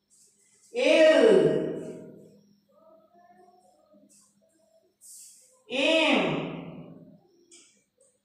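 A woman says single words loudly and clearly, close by.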